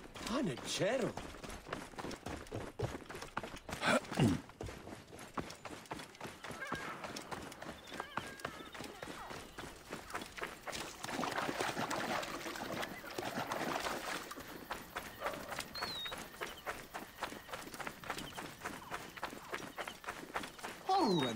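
Quick footsteps run over sand.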